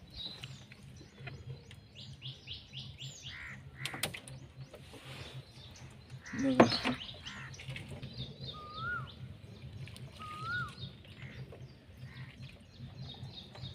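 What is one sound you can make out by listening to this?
A fishing net splashes into the water nearby.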